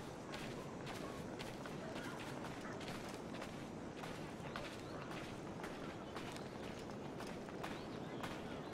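Footsteps tread steadily on dirt and grass.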